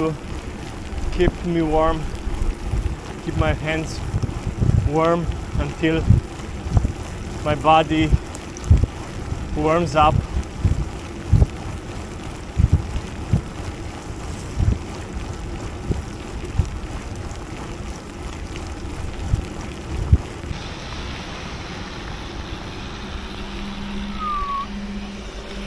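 Bicycle tyres hiss along a wet road.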